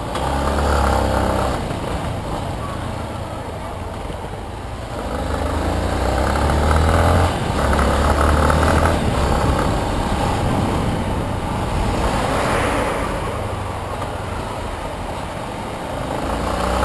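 A motorcycle engine hums and revs up and down close by.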